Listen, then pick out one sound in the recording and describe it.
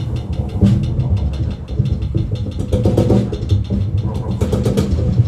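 Drums and cymbals are played with a steady beat.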